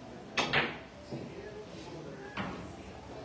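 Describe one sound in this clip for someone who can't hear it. Pool balls knock against each other and roll across the table.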